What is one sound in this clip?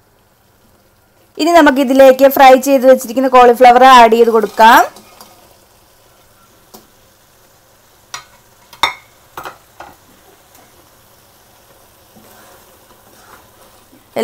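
Sauce sizzles softly in a hot pan.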